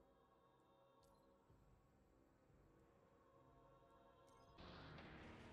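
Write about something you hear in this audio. Menu clicks sound.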